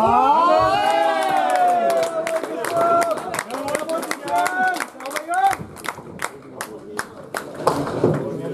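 Pins clatter and crash as a bowling ball strikes them.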